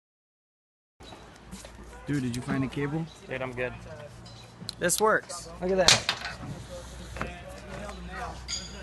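A man talks close by outdoors.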